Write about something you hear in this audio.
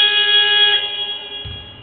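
A buzzer blares loudly and briefly in a large echoing hall.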